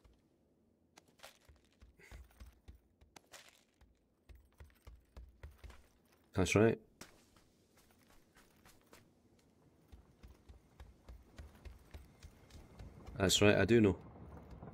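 Footsteps thud steadily on ground and wooden floors.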